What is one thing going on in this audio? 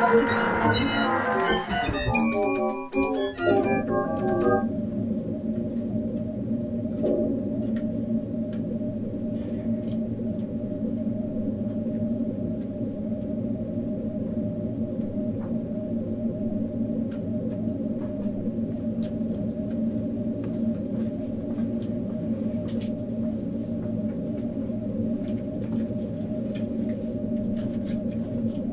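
A low electronic drone hums steadily.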